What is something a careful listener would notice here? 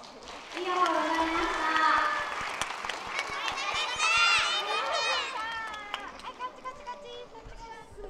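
Young children sing and shout together in a large hall.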